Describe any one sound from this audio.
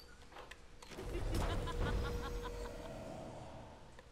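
A sweeping whoosh rushes in and fades.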